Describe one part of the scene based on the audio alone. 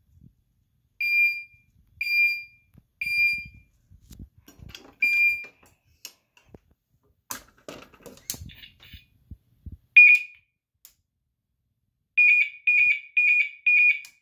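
A fire alarm sounds loud, sharp beeps in short bursts.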